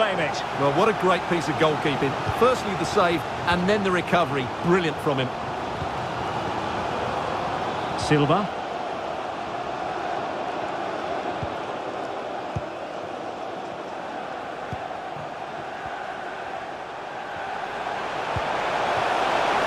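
A large stadium crowd murmurs and cheers steadily, swelling near the end.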